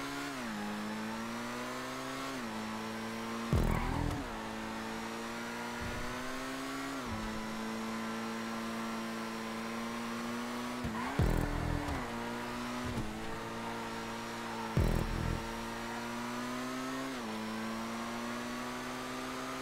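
A race car engine roars steadily, its pitch rising and dropping as it shifts gears.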